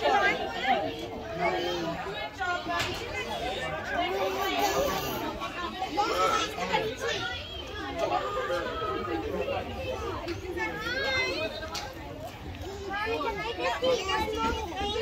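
Young children chatter and squeal nearby.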